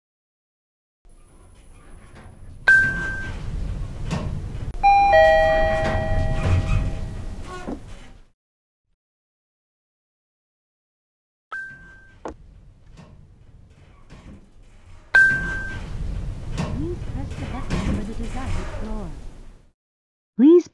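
An elevator motor hums and rumbles as the car moves.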